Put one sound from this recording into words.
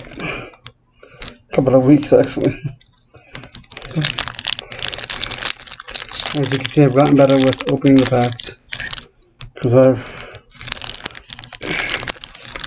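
A plastic wrapper crinkles in a man's hands.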